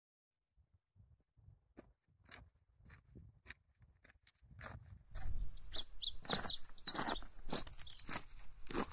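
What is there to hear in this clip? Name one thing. Footsteps crunch on a gravel trail.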